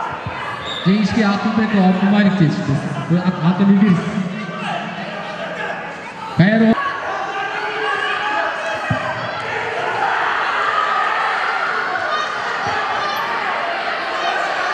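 A crowd murmurs and chatters throughout.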